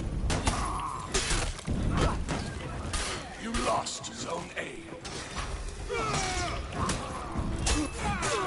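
Swords clash and clang in a fierce fight.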